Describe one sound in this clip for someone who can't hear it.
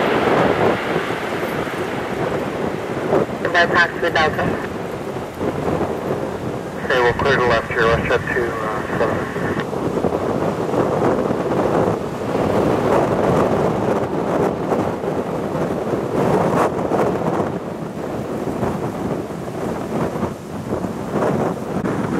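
A jet airliner's engines roar loudly nearby as it rolls along a runway.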